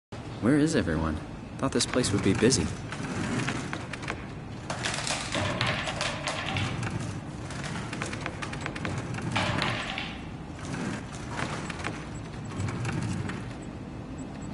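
Wooden desk drawers slide open and shut.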